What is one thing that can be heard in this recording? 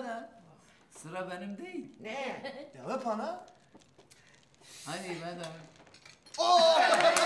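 A middle-aged woman cries and speaks through tears.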